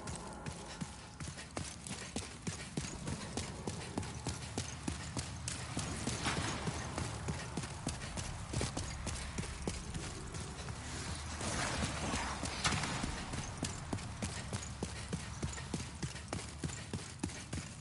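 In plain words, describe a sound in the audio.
Armoured footsteps clank steadily as a knight runs.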